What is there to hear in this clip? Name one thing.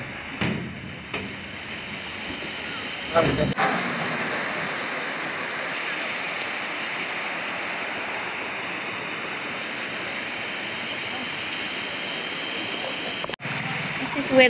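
A river rushes and splashes over rocks nearby.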